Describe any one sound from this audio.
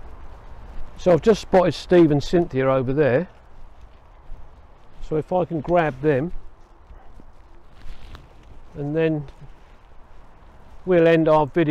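An elderly man speaks calmly, close to the microphone.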